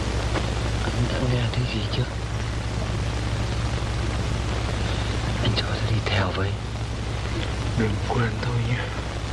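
A man speaks quietly in short phrases.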